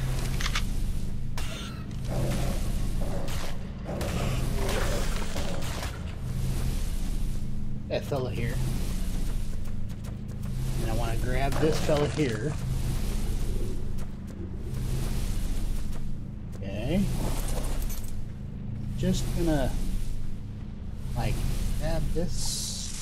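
Lava bubbles and rumbles steadily.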